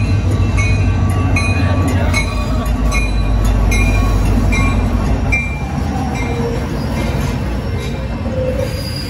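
Train wheels clack rhythmically over the rail joints.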